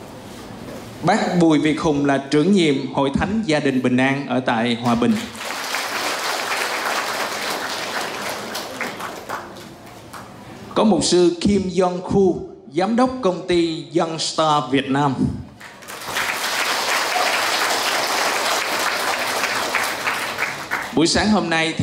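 A man speaks with animation over a loudspeaker in a large echoing hall.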